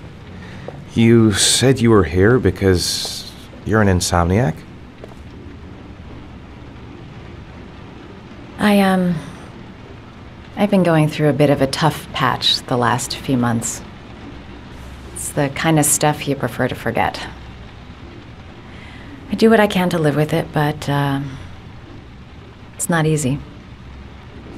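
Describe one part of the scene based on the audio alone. A young woman speaks calmly and close by, in short phrases with pauses.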